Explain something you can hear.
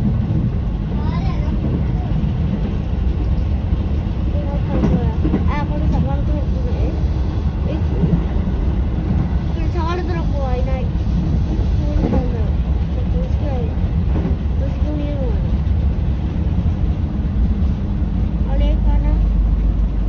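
Train wheels squeal on curving rails now and then.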